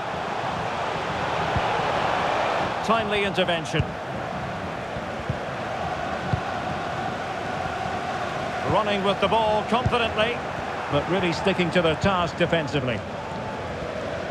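A large crowd roars steadily in a big stadium.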